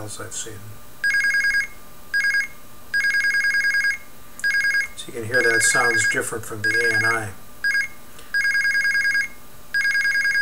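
An electronic buzzer beeps in short and long tones.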